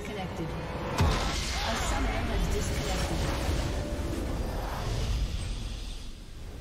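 A deep explosion booms and rumbles.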